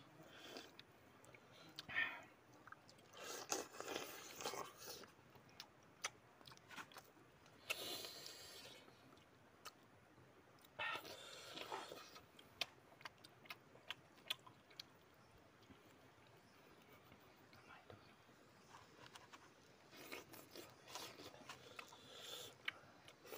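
Two young men chew and slurp fruit close by.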